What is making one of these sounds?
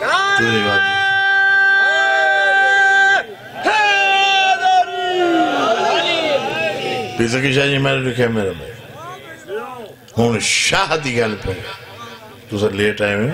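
A man chants in long, drawn-out tones through a microphone.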